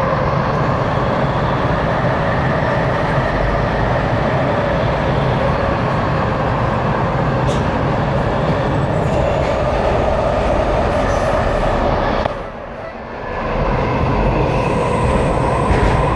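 A subway train rumbles along the track, heard from inside the car.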